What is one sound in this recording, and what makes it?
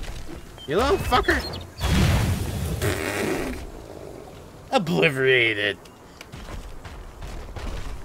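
A large beast roars.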